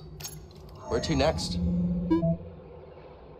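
A holographic display powers up with a loud electronic whoosh.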